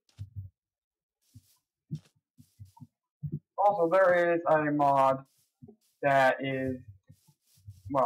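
Soft footsteps thud on grass at an uneven pace.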